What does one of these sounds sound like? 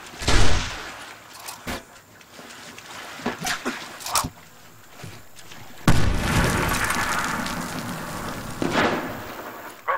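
Rifle shots crack loudly in short bursts.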